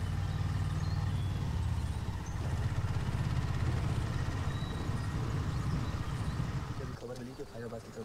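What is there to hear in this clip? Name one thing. A truck engine rumbles steadily as it drives along.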